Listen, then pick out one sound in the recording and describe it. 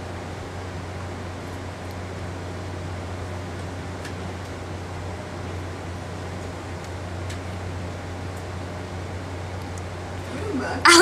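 A ceiling fan hums steadily.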